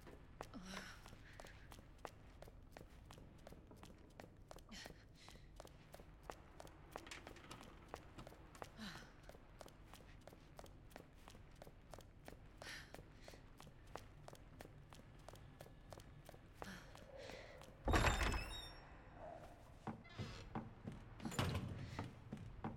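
Quick footsteps run steadily on a hard floor.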